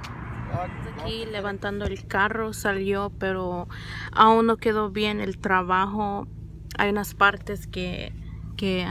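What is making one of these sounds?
A young woman talks with animation close to a phone.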